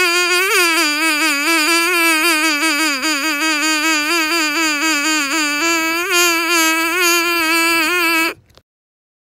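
A man plays a wavering, buzzing tune on a small whistle held to his lips.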